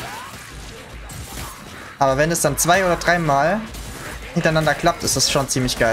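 A blade slashes and strikes flesh with wet thuds.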